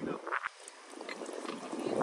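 Rum pours into a glass.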